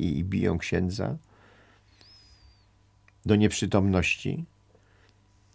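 An elderly man speaks calmly and closely into a microphone, in short bursts with pauses.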